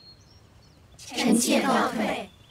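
Several women speak together in unison.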